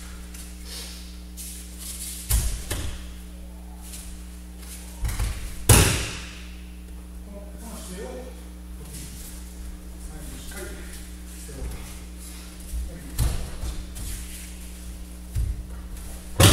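Bare feet shuffle and thump on a mat.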